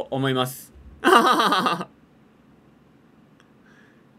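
A young man laughs, close to a microphone.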